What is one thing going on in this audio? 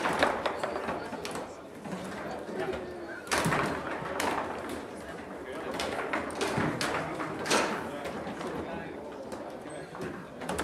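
Foosball rods clatter and a ball knocks sharply against a table.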